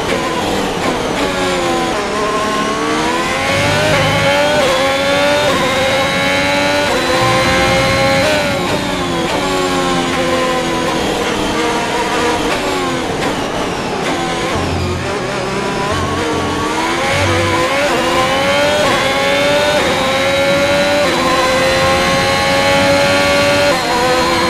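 A racing car engine screams at high revs, rising through the gears and dropping as it slows for corners.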